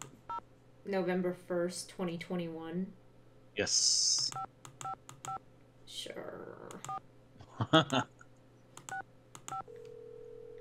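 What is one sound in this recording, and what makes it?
A rotary telephone dial clicks as it turns.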